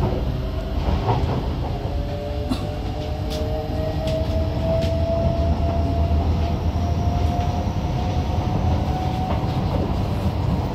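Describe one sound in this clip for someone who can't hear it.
An electric metro train pulls away, its traction motors whining as they rise in pitch.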